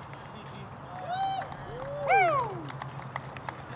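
A man cheers loudly outdoors.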